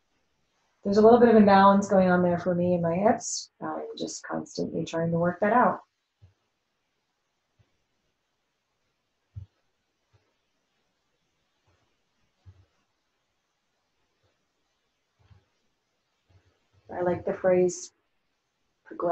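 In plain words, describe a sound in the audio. A woman speaks calmly and clearly into a close microphone, with pauses.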